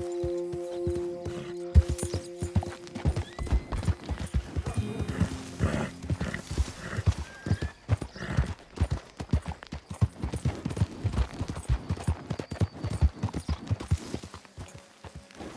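Horse hooves clatter quickly on a dirt road.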